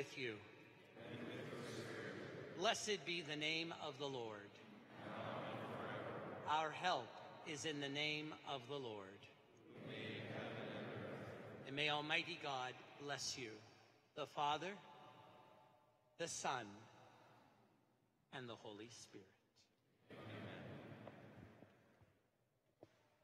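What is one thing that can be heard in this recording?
A man speaks steadily through a microphone, echoing in a large hall.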